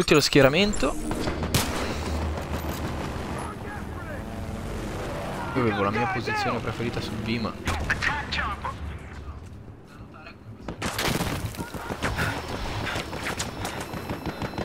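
Rifle shots ring out.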